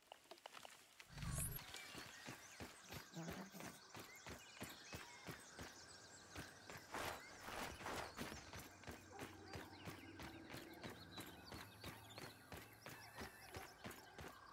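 Quick footsteps patter across soft, sandy ground.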